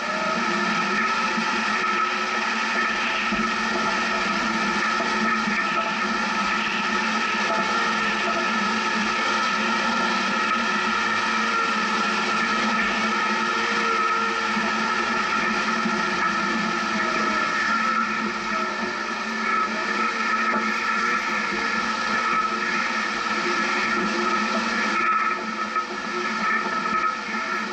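An engine drones steadily as a vehicle climbs a rough dirt track.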